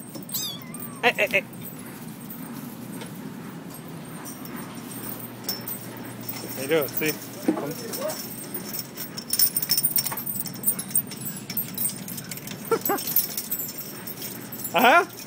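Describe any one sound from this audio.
Kittens mew in high, short cries.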